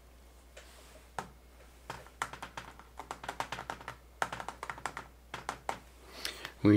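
Fingers tap and click on a small handheld device.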